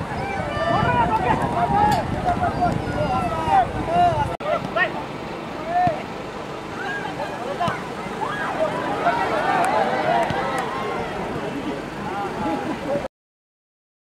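A crowd of spectators shouts and cheers from a distance outdoors.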